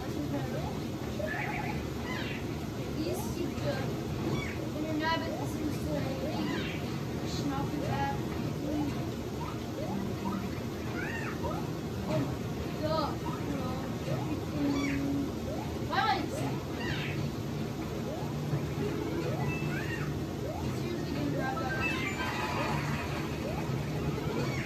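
Video game music plays from a television.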